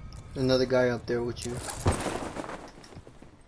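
Leaves and branches rustle as someone crashes through a tree.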